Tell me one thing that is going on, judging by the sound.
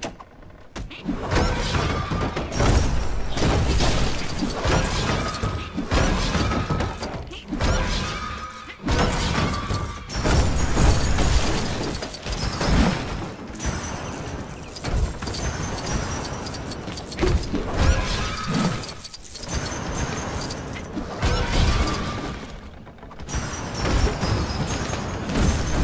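Small coins jingle and chime in quick bursts.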